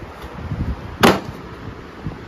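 A cardboard box thumps down on a hard floor.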